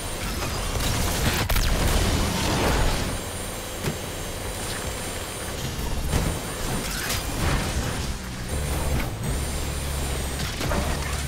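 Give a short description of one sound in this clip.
A racing car engine roars at high speed throughout.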